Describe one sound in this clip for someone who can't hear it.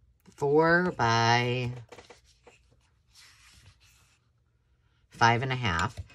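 A tool scrapes along paper against a metal ruler.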